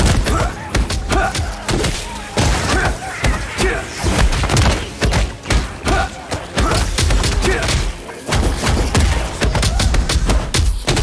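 Video game combat effects crash and boom.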